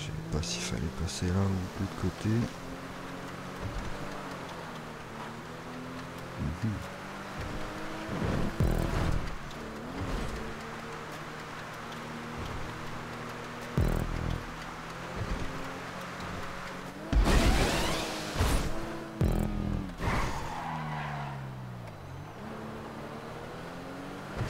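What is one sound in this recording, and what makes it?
A car engine hums steadily and rises in pitch as the van speeds up.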